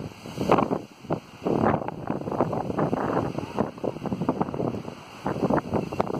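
Strong wind blows in gusts outdoors, rumbling against the microphone.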